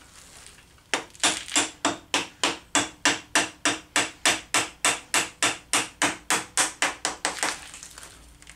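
A ratchet clicks rapidly and evenly on metal.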